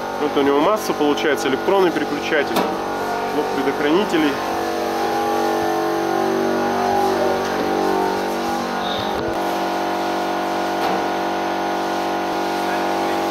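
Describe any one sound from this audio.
A diesel engine idles with a steady low hum in a large echoing hall.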